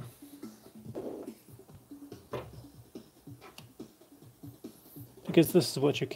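A metal clamp creaks and clicks as it is adjusted by hand.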